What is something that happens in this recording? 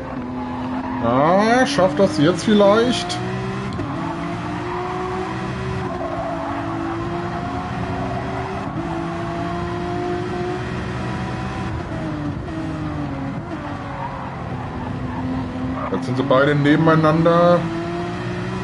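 A race car engine revs sharply and rapidly through the gears in short bursts.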